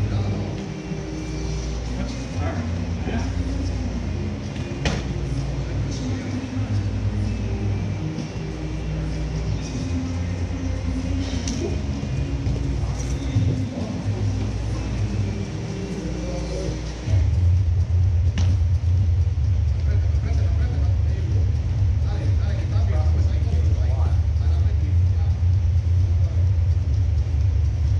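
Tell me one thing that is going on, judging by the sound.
Gloved punches thud as two men spar.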